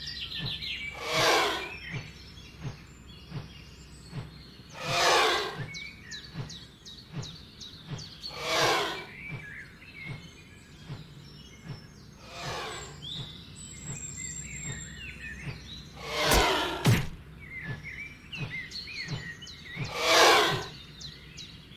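A dragon lets out shrill screeches again and again.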